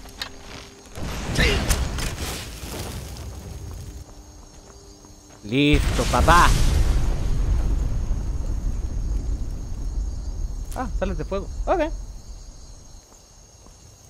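A fiery explosion roars and rumbles.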